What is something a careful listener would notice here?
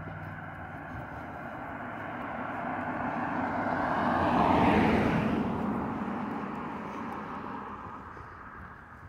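A car approaches on a paved road, passes close by and fades away.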